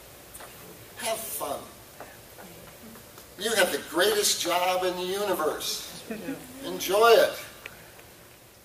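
An elderly man speaks through a microphone, echoing in a large hall.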